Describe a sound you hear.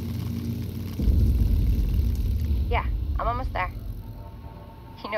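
A motorcycle engine revs up into a louder roar, then slowly fades.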